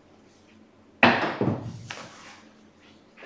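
Dice are thrown and tumble across a felt table, knocking against its wall.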